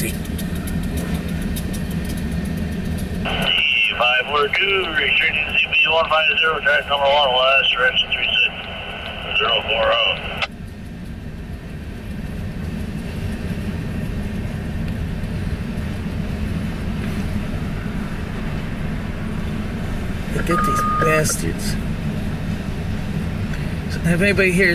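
A freight train rumbles and clatters steadily past nearby.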